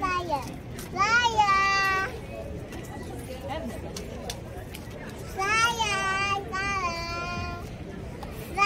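A young child calls out in a high, sing-song voice nearby.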